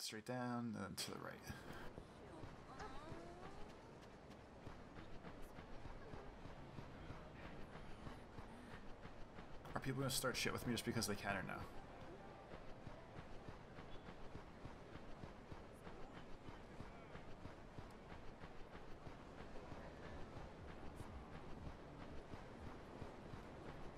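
Footsteps run quickly over packed snow.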